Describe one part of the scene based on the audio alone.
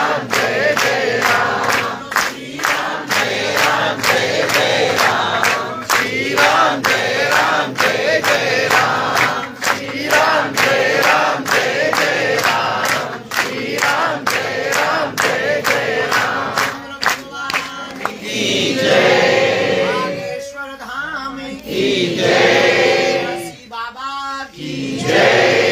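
A young man sings loudly into a microphone over loudspeakers.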